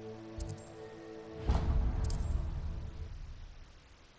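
A menu chime rings.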